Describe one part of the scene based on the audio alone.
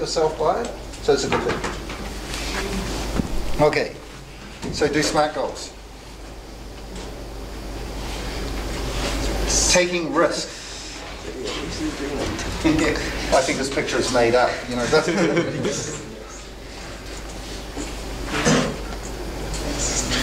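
A middle-aged man speaks calmly nearby.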